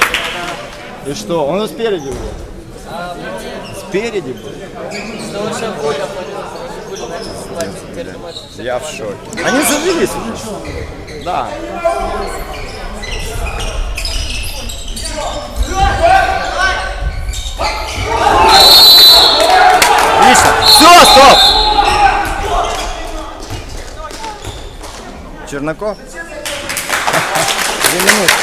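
Players' shoes squeak and thud on a hard court in a large echoing hall.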